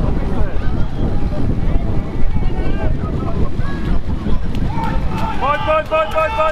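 Runners splash through muddy water.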